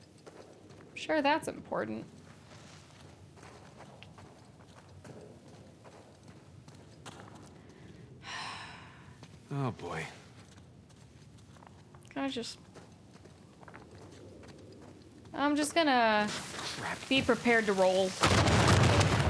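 A young woman speaks into a microphone with animation.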